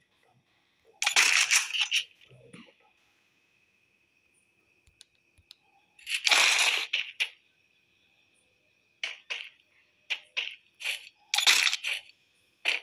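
A short chime sounds with each purchase in a game menu.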